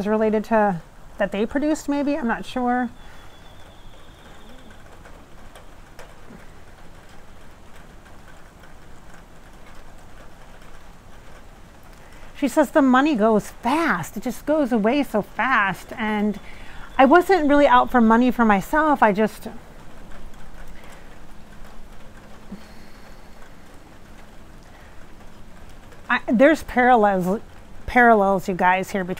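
A woman talks calmly and closely into a clip-on microphone, with pauses.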